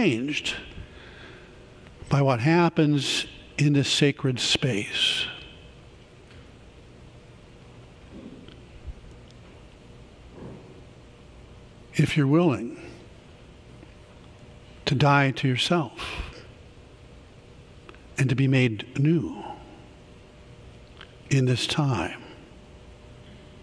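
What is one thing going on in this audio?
A middle-aged man speaks calmly through a microphone in a large echoing hall, with long pauses.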